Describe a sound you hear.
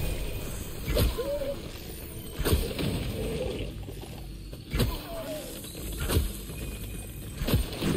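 A bow twangs sharply as arrows are loosed.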